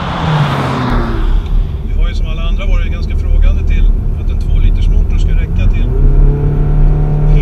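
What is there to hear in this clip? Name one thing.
A car engine drones steadily from inside the moving car.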